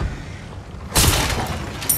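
A wooden crate smashes apart.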